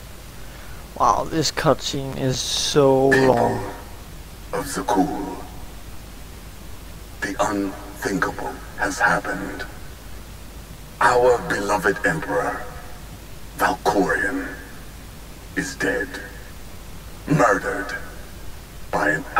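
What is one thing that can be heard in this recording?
A young man talks calmly into a microphone, close by.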